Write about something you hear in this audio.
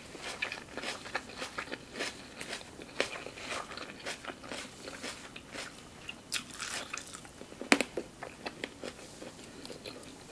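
Cherry tomatoes snap off their vine.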